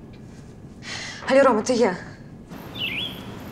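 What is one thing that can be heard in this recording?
A young woman speaks softly into a phone.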